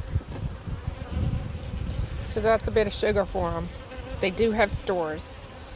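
Bees hum softly close by.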